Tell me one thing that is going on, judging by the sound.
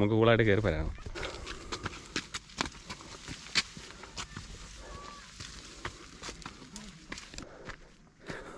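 Footsteps crunch on a dirt trail through tall grass.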